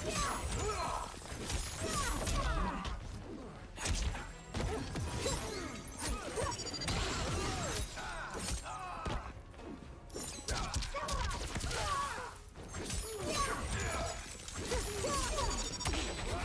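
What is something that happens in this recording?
Ice cracks and shatters.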